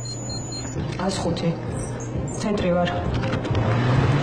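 A young woman speaks calmly into a headset microphone.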